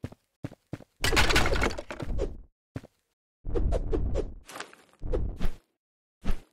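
Blows thud and slash in a fight.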